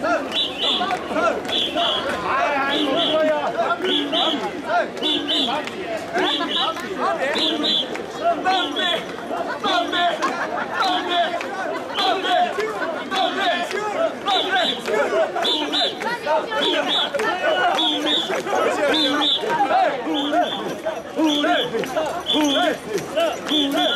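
A crowd of men chant loudly in a steady rhythm nearby.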